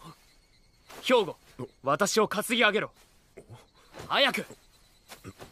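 A young man gives a firm command close by.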